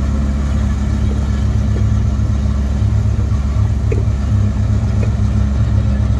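An excavator bucket scrapes and knocks on rubble.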